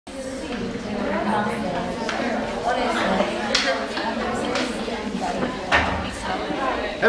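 Girls chatter and laugh in a room that echoes.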